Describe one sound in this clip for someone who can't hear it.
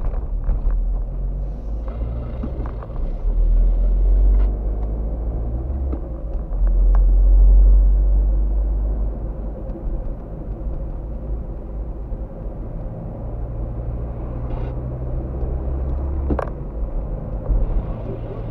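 Tyres rumble over a rough road.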